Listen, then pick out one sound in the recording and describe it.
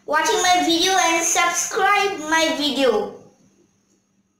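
A young boy speaks clearly and with animation close to a microphone.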